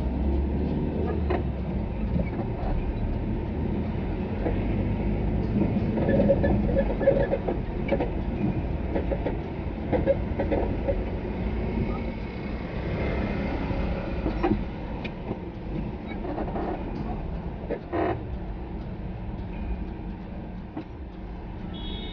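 Tyres roll over a street.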